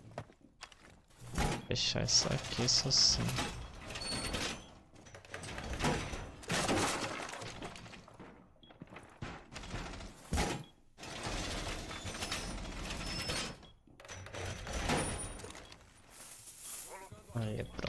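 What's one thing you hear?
Heavy metal panels clank and slide into place.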